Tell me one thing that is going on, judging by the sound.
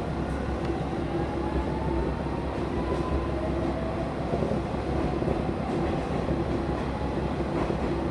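An electric train rumbles past steadily, its wheels clattering on the rails.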